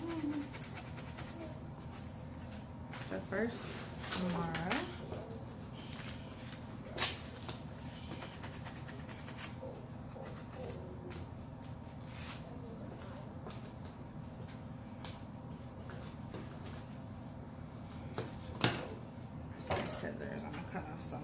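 Paper rustles and crinkles as it is folded by hand.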